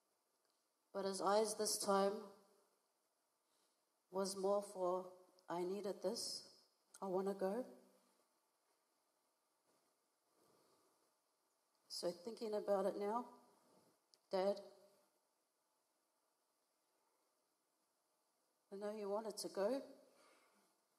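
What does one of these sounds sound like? A young woman reads out calmly through a microphone in an echoing hall, pausing between phrases.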